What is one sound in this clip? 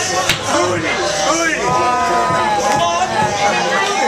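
A man laughs and shouts with excitement.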